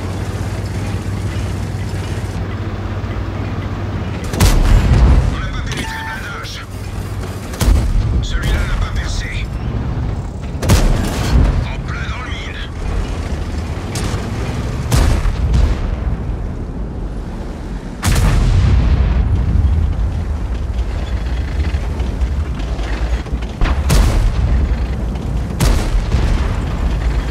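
A heavy tank engine rumbles steadily.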